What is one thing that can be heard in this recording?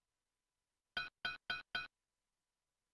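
A game chimes four times in quick succession as coins are picked up.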